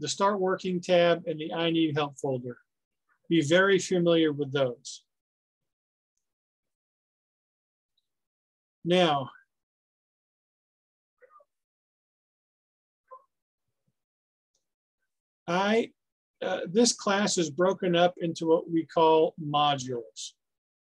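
A man speaks calmly through a microphone on an online call, with pauses.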